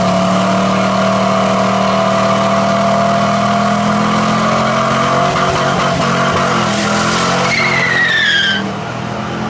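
Tyres squeal and spin on the pavement.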